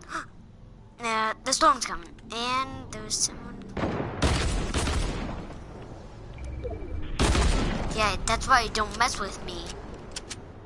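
A boy shouts excitedly into a microphone.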